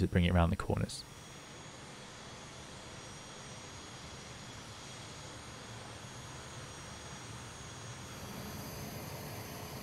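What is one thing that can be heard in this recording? A jet engine idles with a steady, high whine.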